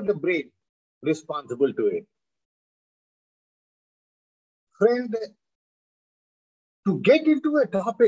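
An elderly man speaks calmly in short bursts over an online call.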